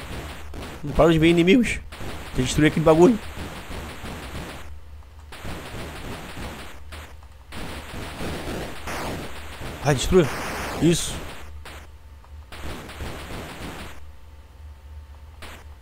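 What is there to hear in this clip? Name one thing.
Retro video game sound effects blip and zap.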